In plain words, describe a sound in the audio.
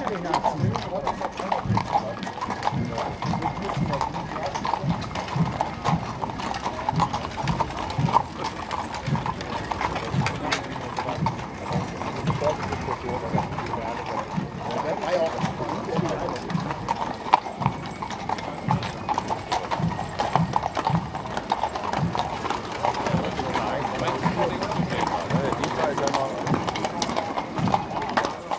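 Horses' hooves clop steadily on a paved road.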